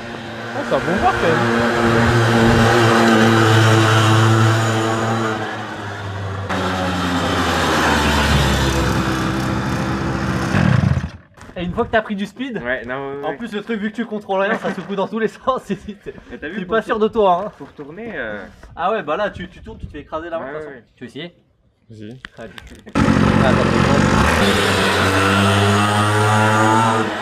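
A small motorbike engine buzzes loudly and revs.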